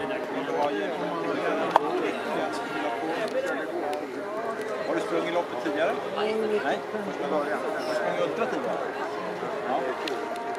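A middle-aged man talks breathlessly close by, outdoors.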